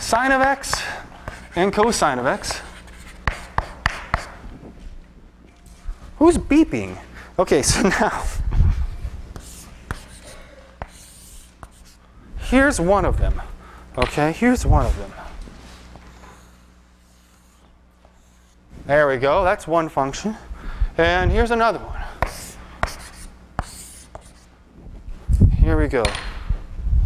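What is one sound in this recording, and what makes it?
A man lectures with animation in a large echoing hall.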